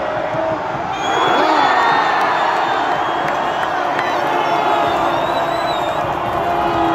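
A crowd cheers and roars louder.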